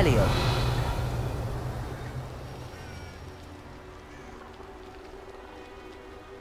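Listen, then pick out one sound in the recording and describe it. Footsteps crunch on a forest floor.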